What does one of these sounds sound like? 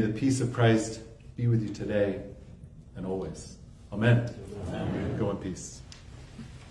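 A man speaks calmly and solemnly into a microphone.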